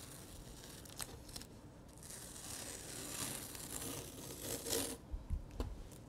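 Paper tissue crinkles and rustles as it dabs against paper.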